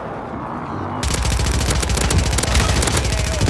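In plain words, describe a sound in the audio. An automatic rifle fires rapidly.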